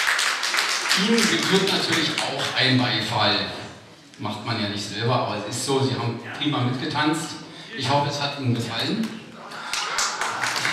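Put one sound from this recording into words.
A middle-aged man speaks through a microphone and loudspeakers with animation.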